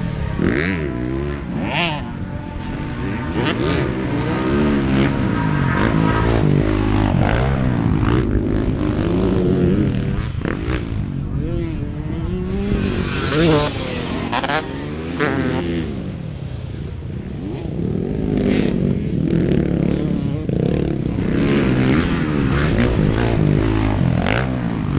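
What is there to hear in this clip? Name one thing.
A dirt bike engine revs up and down nearby.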